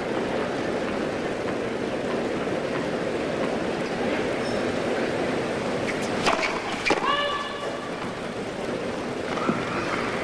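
A tennis ball is struck hard with a racket.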